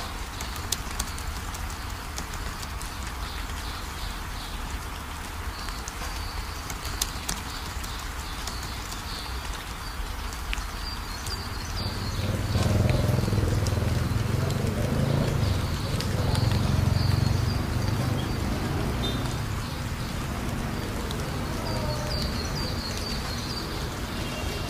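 Rain patters steadily on a wet paved path.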